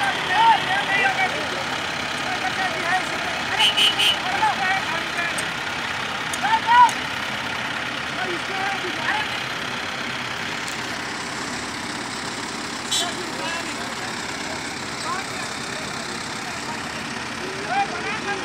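Heavy diesel engines idle steadily nearby.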